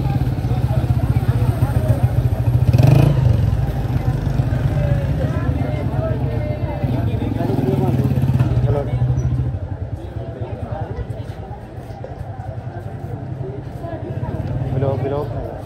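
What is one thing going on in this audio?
A crowd of people chatters in a busy street.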